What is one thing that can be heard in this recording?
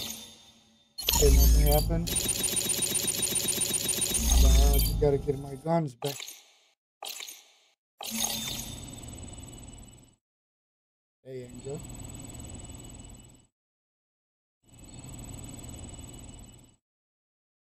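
Game menu sounds chime and whoosh.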